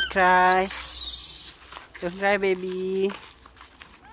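A cat meows loudly from inside a pet carrier.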